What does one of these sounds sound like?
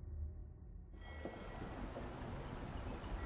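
Water laps gently against a wooden pier outdoors.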